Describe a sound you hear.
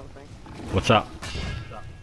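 A sword strikes a large creature with a heavy thud.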